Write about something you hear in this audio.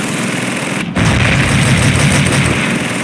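A machine gun fires a rapid burst up close.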